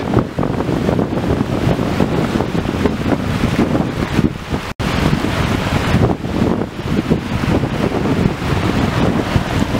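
Waves wash onto a shore.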